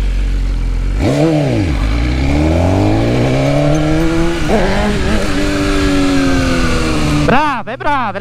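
Wind rushes past a speeding motorcycle.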